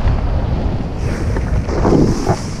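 Fabric and straps rustle and flap close by.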